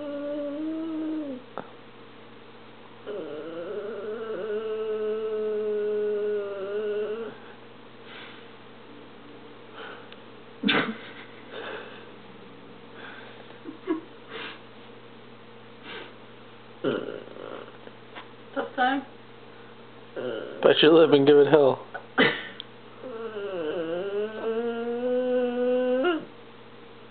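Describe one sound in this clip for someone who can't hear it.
A dog howls and whines in long drawn-out notes.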